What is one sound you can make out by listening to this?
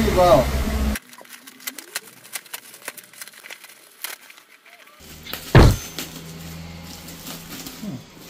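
Plastic packaging crinkles and rustles as hands tear it open.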